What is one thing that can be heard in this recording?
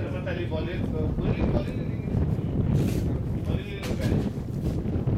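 Young men call out faintly in the distance.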